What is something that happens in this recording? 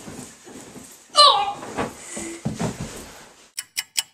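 A bed creaks and thumps as a boy jumps on it.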